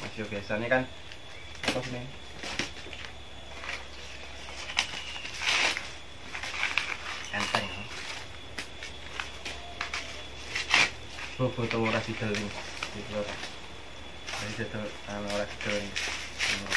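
Dry corn husks rustle and crackle as they are peeled.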